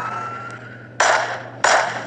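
A revolver fires loud shots.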